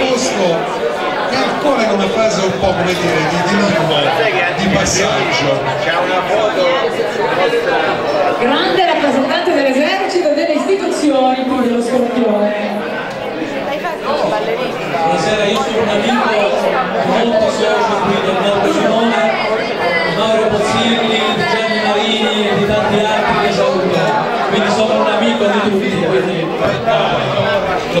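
Glasses and plates clink.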